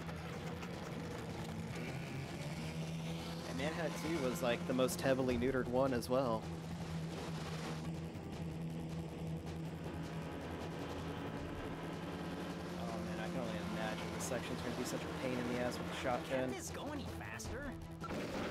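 Boat engines drone steadily.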